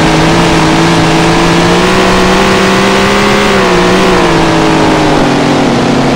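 Tyres rumble over dirt.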